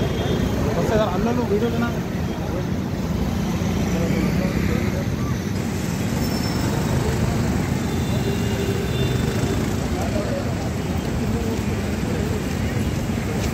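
A crowd of men chants and shouts outdoors.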